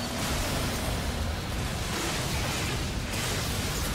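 A fiery blast bursts with a roar.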